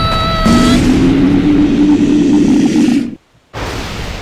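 A fiery spell blasts and roars loudly.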